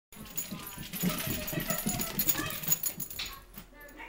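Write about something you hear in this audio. Small dogs' claws click and patter on a hard floor.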